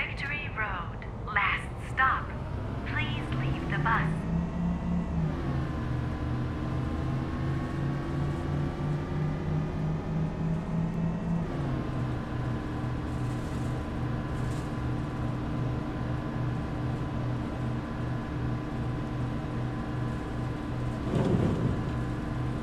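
A bus engine hums steadily, rising and falling in pitch as the bus drives and changes gear.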